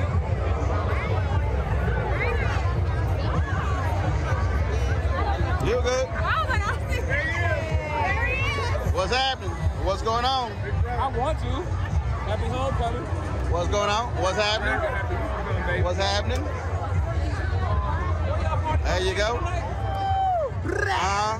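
A crowd chatters and mingles outdoors.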